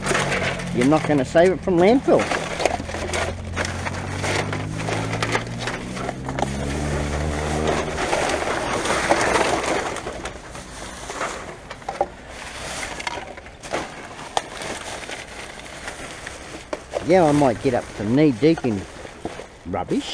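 Plastic bottles and containers clatter as they are shifted.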